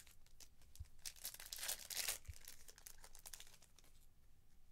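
A foil card pack crinkles and tears open close by.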